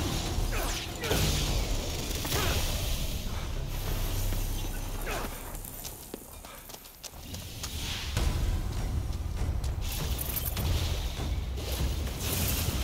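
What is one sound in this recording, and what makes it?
Magic fire crackles and whooshes in short bursts.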